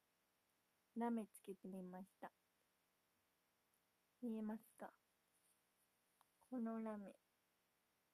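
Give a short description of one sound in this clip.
A young woman speaks softly and close to the microphone, in short phrases.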